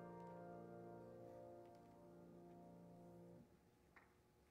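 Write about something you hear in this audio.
A piano plays a soft held chord and then stops.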